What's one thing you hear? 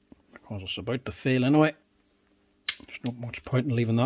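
A puller tool's screw is turned with a wrench, clicking.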